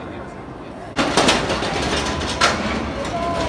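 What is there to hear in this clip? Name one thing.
A roller coaster train roars and rattles along its track.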